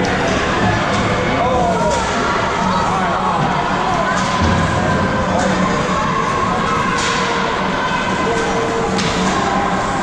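Hockey sticks click and clack against the puck and ice.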